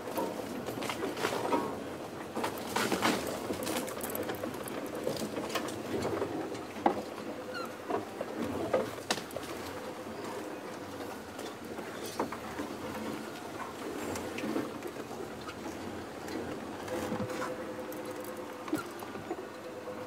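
A vehicle engine hums steadily while driving slowly over rough ground.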